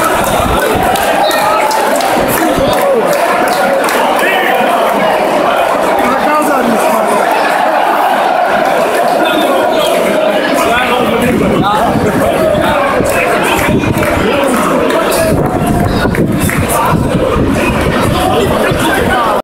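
A large stadium crowd sings and chants loudly all around.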